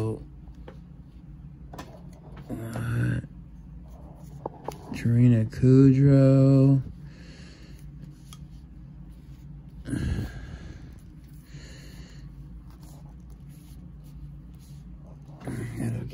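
Playing cards slide and tap softly on a cloth mat.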